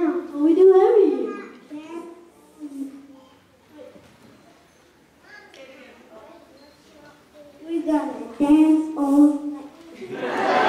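A group of young children sing together on a stage.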